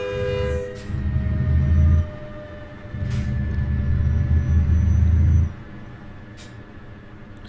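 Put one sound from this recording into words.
A heavy truck engine rumbles low, surging as it speeds up and dropping back between bursts.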